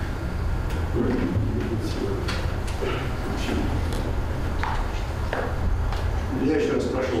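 A young man reads aloud calmly.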